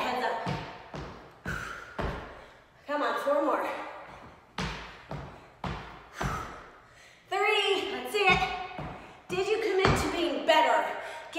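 Feet thump on a wooden floor with each jump.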